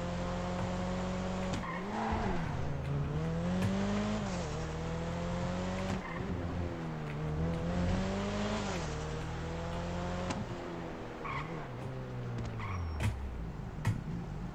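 A car engine revs and hums steadily.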